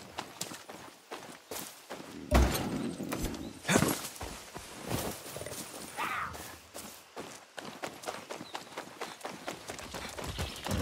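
Footsteps fall steadily on hard ground.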